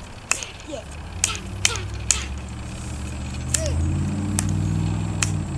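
A plastic snowball scoop clacks several times.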